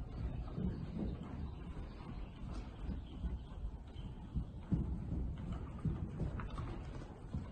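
A horse's hooves thud softly on sand in a rhythmic trot.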